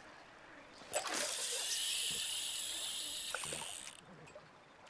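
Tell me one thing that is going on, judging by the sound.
A fishing line whirs off a reel during a cast.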